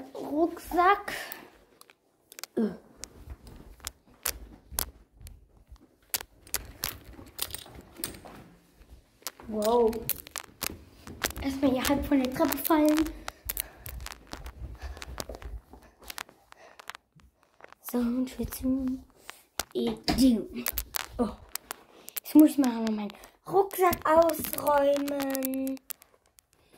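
A young girl talks close to a phone microphone, in short bursts with pauses.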